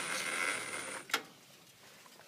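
A plastic valve clicks shut.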